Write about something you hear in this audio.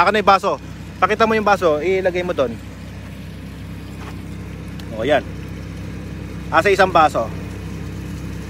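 Water splashes steadily from a pipe into a glass.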